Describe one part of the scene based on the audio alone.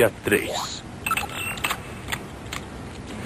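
A computer console beeps and chirps.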